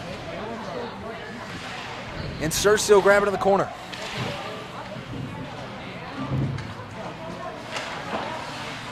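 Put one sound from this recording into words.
A crowd of spectators murmurs in an echoing rink.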